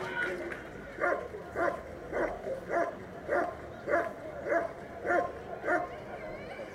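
A dog barks loudly and repeatedly.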